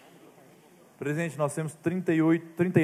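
A man speaks loudly and clearly into a microphone.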